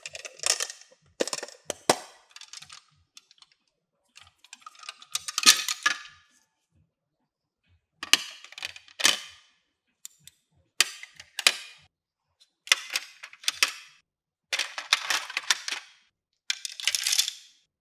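Plastic beads rattle against each other.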